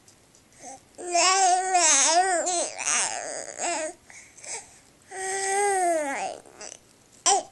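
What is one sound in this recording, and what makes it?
A baby coos and squeals in a high voice close by.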